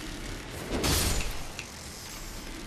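A sword slashes with a fiery burst.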